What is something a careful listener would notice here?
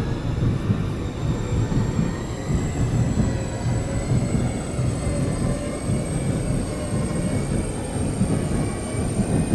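A train rumbles along with a low, steady rumble.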